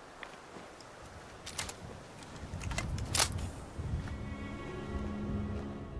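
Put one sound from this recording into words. A rifle is reloaded with metallic clicks and clacks.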